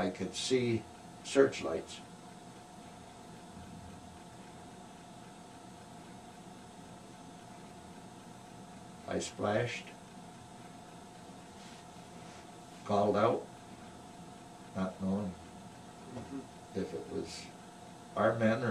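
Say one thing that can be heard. An elderly man speaks calmly and haltingly, close by, with long pauses.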